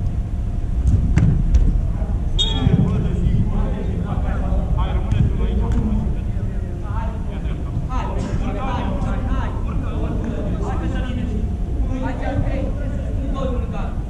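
Men shout to each other in a large echoing hall.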